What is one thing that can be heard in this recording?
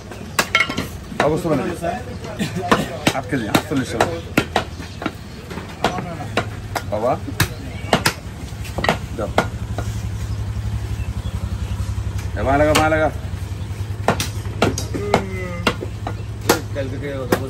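A cleaver chops beef on a wooden block with sharp thuds.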